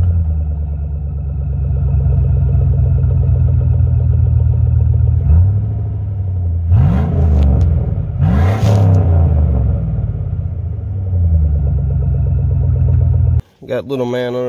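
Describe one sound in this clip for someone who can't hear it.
An engine idles with a steady deep rumble and revs briefly.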